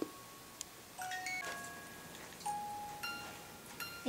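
A phone plays short electronic tones.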